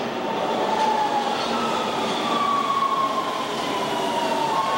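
Train brakes squeal with a long falling whine.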